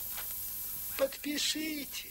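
A man speaks loudly.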